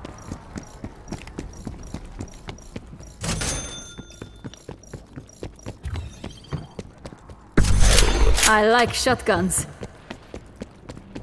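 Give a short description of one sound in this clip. Footsteps tread quickly and steadily on a hard floor.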